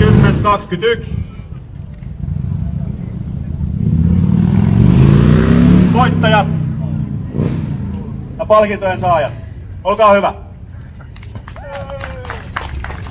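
A motorcycle engine rumbles and revs up.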